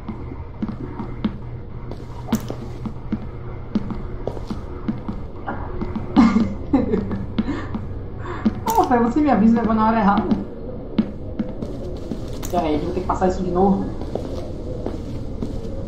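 Soft footsteps tread across a hard floor.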